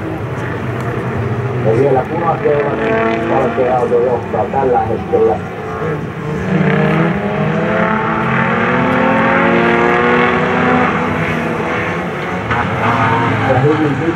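Racing car engines roar and whine as a pack of cars speeds by, rising and falling in pitch.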